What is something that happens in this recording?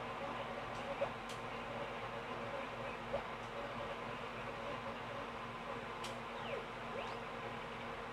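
Short chirping sound effects pop from a television speaker.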